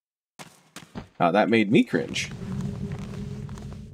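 Footsteps scuff on stone as a game character walks.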